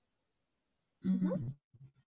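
A woman speaks briefly through an online call.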